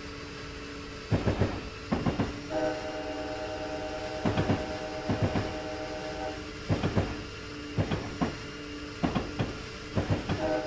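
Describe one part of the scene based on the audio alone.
A diesel locomotive engine drones steadily.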